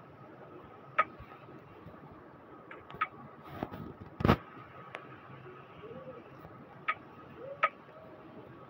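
Menu buttons click sharply a few times.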